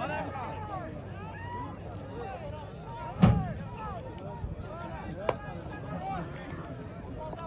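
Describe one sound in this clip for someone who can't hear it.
A large outdoor crowd of men shouts and calls out.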